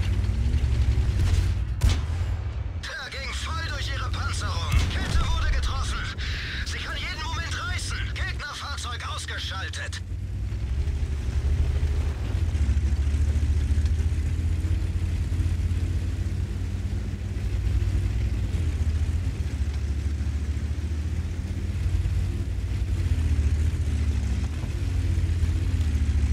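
A heavy tank engine rumbles low and steady.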